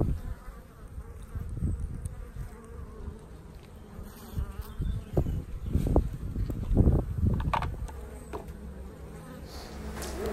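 Honeybees hum and buzz close by.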